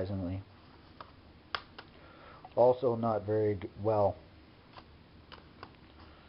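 Plastic disc cases clack softly as a hand handles them.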